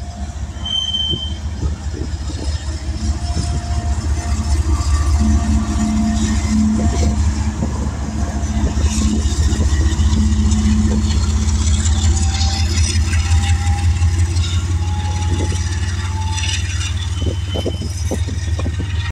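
Freight train wheels clack over rail joints.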